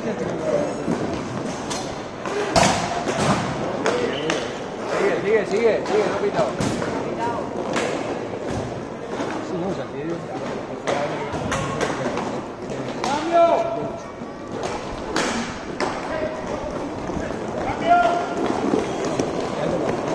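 Inline skate wheels roll and scrape across a hard court.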